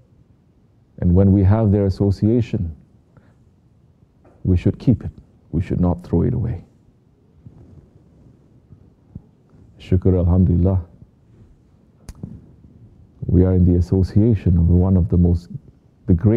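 A man speaks slowly and solemnly, in short phrases with long pauses.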